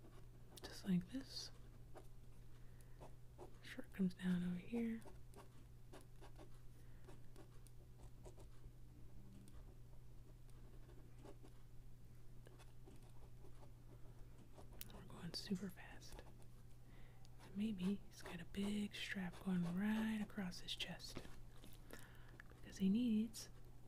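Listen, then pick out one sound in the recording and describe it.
A felt-tip pen scratches softly across paper.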